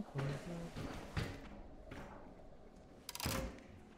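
Heavy metal doors clank and slide shut.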